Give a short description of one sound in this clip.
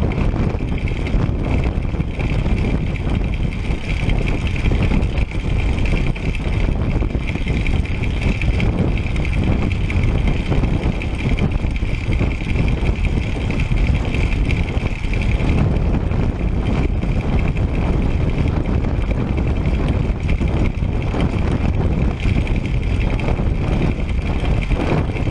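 Wind buffets loudly across the microphone outdoors.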